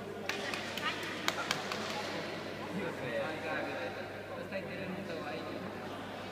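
People chatter in the background of a large echoing hall.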